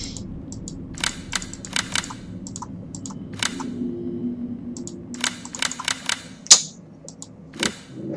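Mechanical combination wheels click as they turn.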